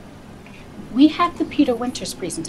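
A woman speaks with attitude close by.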